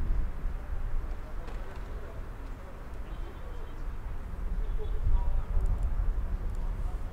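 Men shout to each other across an open field, heard from a distance.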